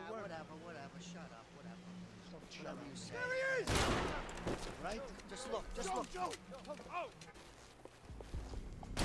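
Men talk tensely and shout.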